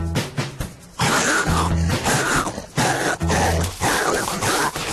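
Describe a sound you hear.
A cartoon hyena screeches.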